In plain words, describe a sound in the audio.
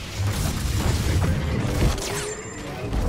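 Lightsabers hum and clash with sharp crackling impacts.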